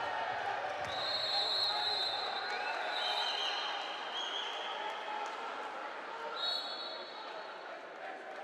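A referee's whistle blows shrilly several times.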